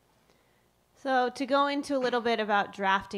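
A woman speaks into a microphone in a calm, clear voice.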